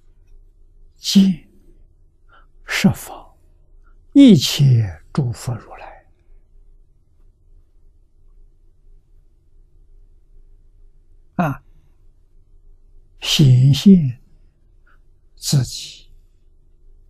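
An elderly man speaks slowly and calmly, close to a microphone, with long pauses.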